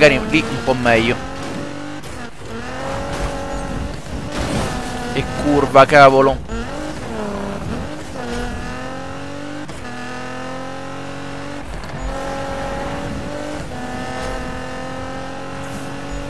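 A car engine roars and revs up and down as the car races.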